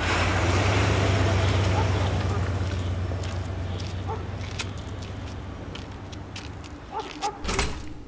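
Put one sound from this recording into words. A suitcase rolls on its wheels over a rough pavement.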